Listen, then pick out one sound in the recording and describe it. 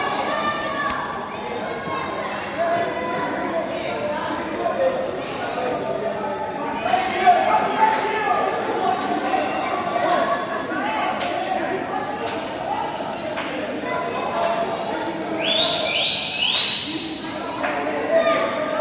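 A crowd of spectators chatters throughout a large echoing indoor hall.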